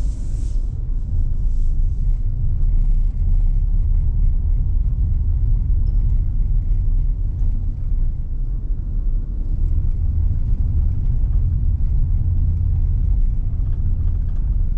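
A car engine hums low and steady from inside the cabin as the car drives along.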